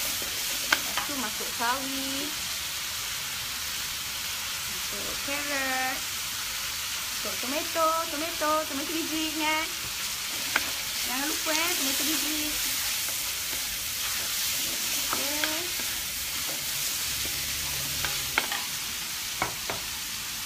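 A wooden spatula scrapes and knocks against a metal wok.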